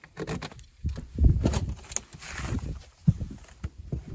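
Wooden boards knock and thud sharply.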